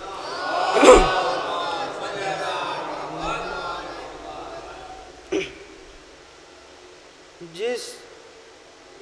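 A young man recites with feeling into a microphone, heard through loudspeakers in an echoing hall.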